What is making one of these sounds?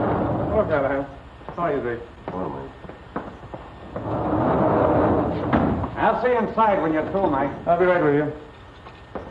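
Another man answers in a low voice.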